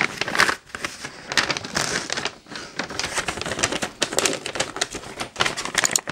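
Wrapping paper crinkles and rustles as it is torn open close by.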